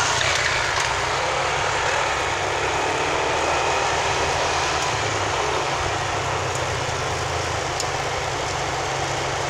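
Motorbike engines buzz nearby.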